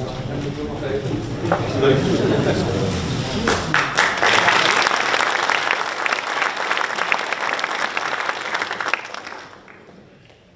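An audience applauds warmly.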